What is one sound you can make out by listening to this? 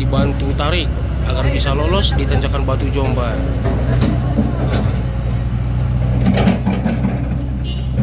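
A man talks loudly outdoors.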